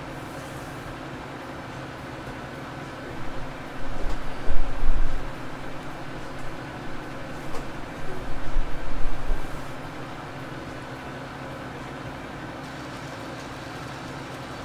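A harvester engine drones steadily.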